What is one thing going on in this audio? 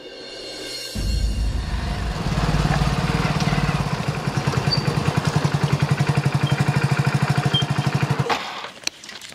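A motorcycle engine rumbles steadily as a motorcycle rides up close.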